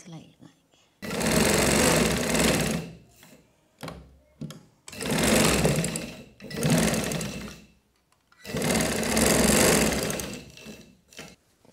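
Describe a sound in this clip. A sewing machine runs in quick bursts, whirring and stopping.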